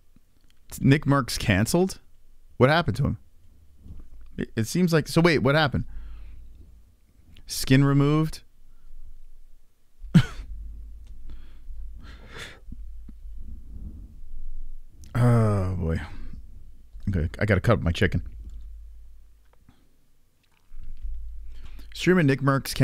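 A man talks into a close microphone with animation, in short bursts.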